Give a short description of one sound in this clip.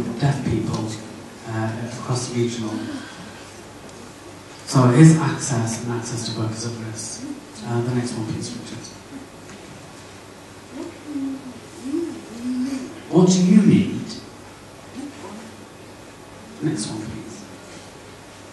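A woman speaks with animation through a microphone in a large echoing hall.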